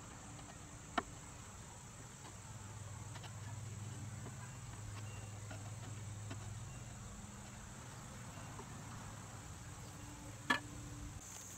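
A hand tool clicks and knocks against wood.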